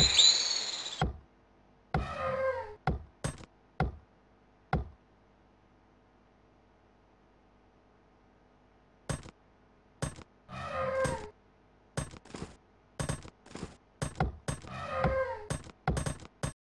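Axes chop at wood in sharp, uneven knocks.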